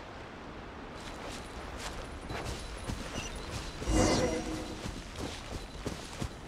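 Footsteps rustle through grass at a quick pace.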